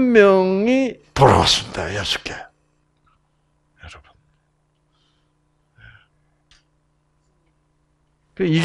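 An elderly man speaks calmly through a microphone, with long pauses.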